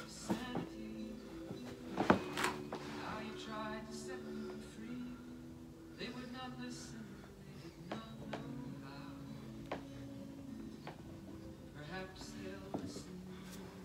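Bare feet thump softly on a carpeted floor.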